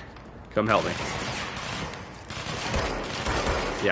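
A pistol fires in short bursts.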